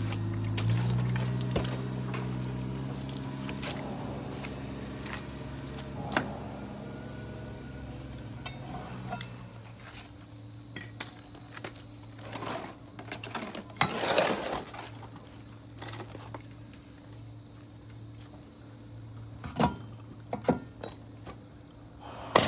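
Metal tools clank and knock against each other.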